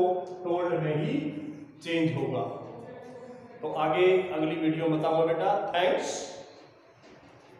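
A middle-aged man speaks loudly and clearly, like a teacher explaining, in a room with some echo.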